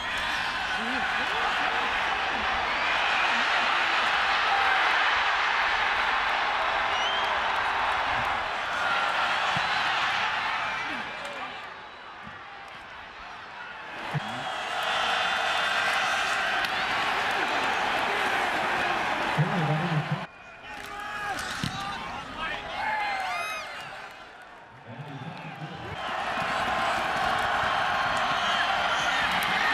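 A large stadium crowd cheers and roars loudly outdoors.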